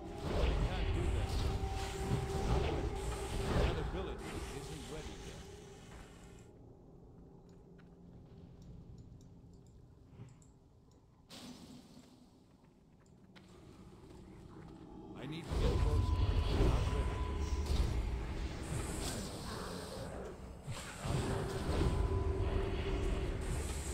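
Game combat sounds clash with spell effects and hits.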